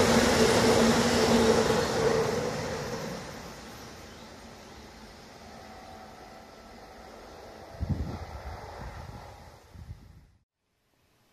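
A train rumbles past close by and fades into the distance.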